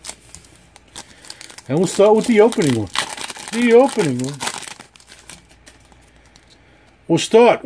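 A foil card wrapper crinkles and tears open.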